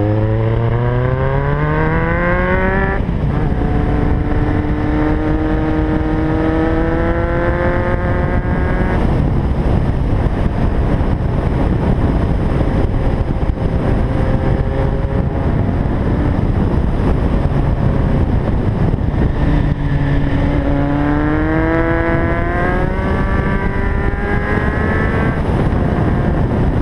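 A motorcycle engine revs up and down.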